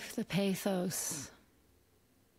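A woman speaks softly into a close microphone.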